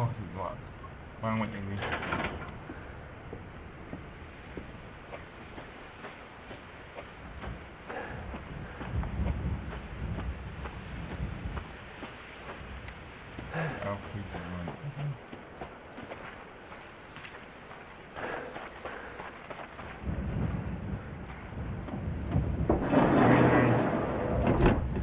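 A young man talks casually into a nearby microphone.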